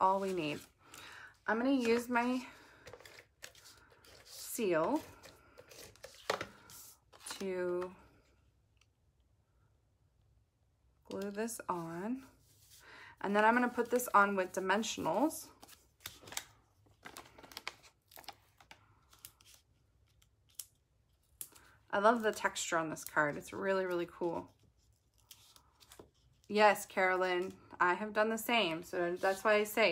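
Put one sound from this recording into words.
Paper rustles and taps on a table.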